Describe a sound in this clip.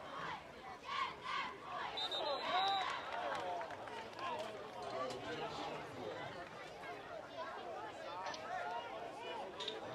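A crowd of people cheers and shouts outdoors at a distance.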